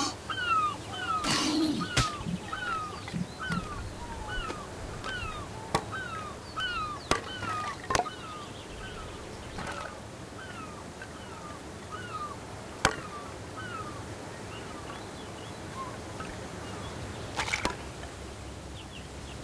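Bones clatter and knock together.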